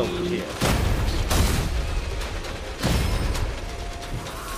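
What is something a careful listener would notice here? Gunfire and explosions boom in bursts.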